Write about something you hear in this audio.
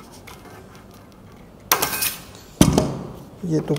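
Metal snips cut through thin sheet metal with sharp clicks.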